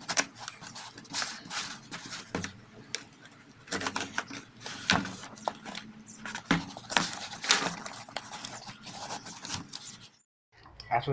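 A knife scrapes and slices through cardboard tape.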